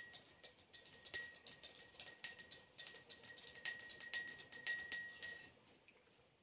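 A spoon clinks against a tea glass.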